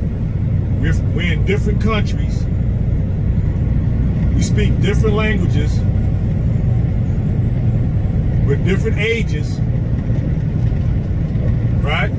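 A car drives steadily with a low, constant road rumble.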